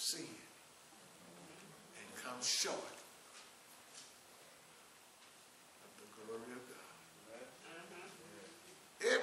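An elderly man preaches with animation through a microphone in an echoing hall.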